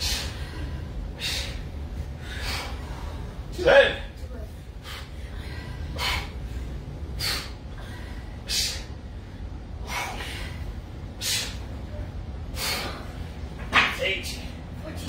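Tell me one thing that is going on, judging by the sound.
A woman exhales sharply in a steady rhythm while exercising.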